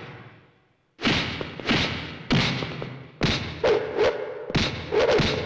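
Fists land on bodies in a fight with sharp, quick thuds.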